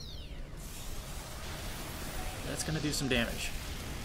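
Electric crackling bursts and zaps.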